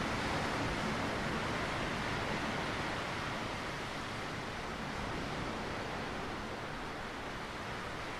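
Waves wash gently onto a rocky shore.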